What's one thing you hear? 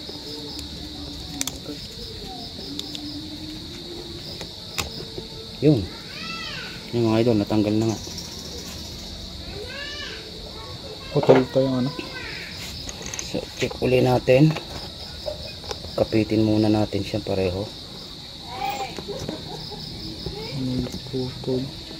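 Plastic wires rustle and click softly as fingers handle them.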